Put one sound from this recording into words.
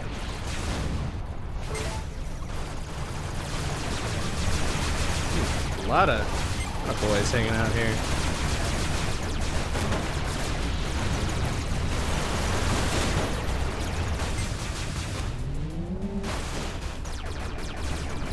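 Laser weapons fire in rapid bursts.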